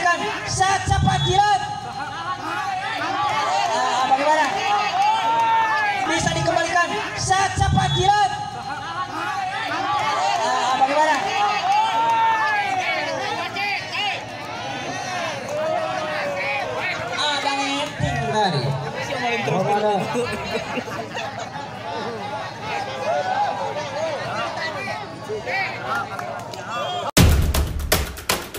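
A volleyball is hit hard with a slap.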